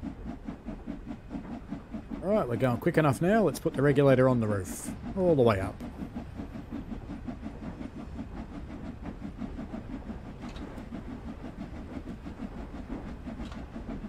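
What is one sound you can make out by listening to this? A steam locomotive chuffs steadily with a rhythmic beat.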